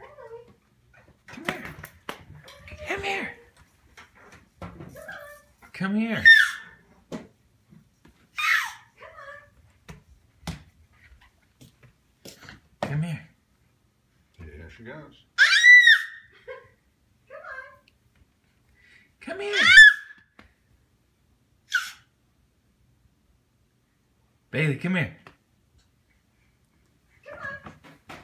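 A baby's hands pat on a wooden floor while crawling.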